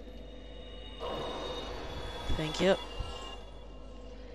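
A fire crackles and flares with a whoosh.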